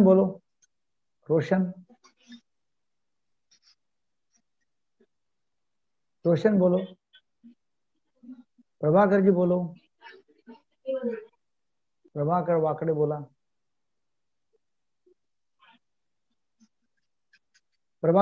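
An elderly man speaks calmly in short phrases through an online call, with long pauses.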